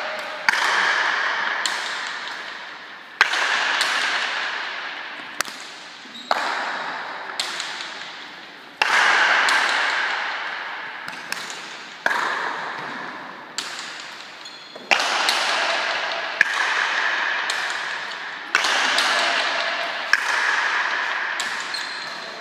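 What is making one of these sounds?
Players' shoes squeak on a smooth floor.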